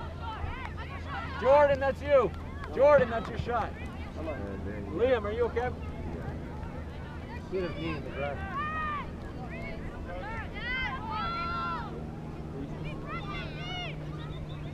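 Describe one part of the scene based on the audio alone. Adult spectators shout encouragement outdoors nearby.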